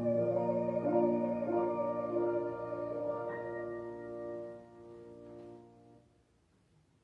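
A woman sings through a microphone.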